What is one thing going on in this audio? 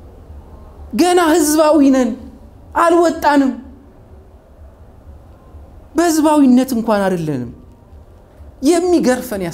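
A man speaks with animation in short bursts, close to a microphone.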